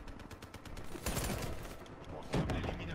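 Gunshots fire in a quick burst.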